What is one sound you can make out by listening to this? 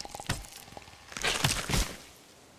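A creature snarls loudly close by.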